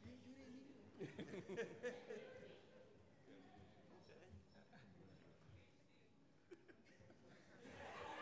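People clap their hands in an echoing hall.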